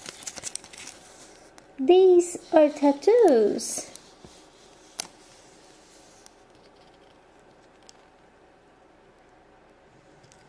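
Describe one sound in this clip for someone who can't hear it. A plastic sticker sheet crinkles in someone's hands.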